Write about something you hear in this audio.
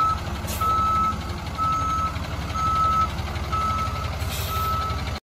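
A truck's diesel engine rumbles steadily close by.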